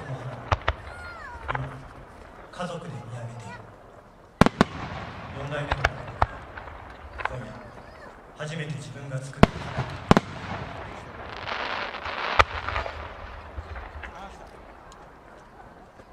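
Fireworks rockets whistle and fizz as they rise.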